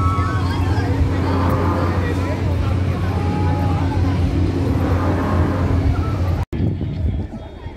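A noisy crowd chatters and screams outdoors.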